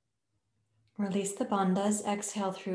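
A middle-aged woman speaks calmly and close to the microphone.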